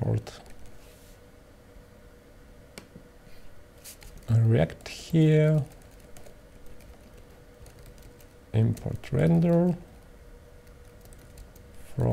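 Keys tap on a keyboard.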